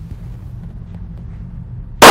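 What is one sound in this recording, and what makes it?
A gunshot bangs loudly in an echoing range.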